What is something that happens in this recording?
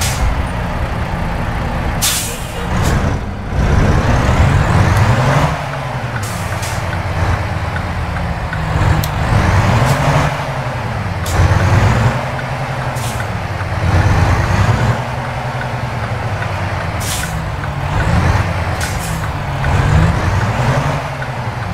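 A truck engine drones and rises in pitch again and again as it shifts gears.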